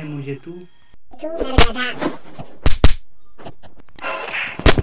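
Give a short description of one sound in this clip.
A boy speaks nervously in a cartoon voice.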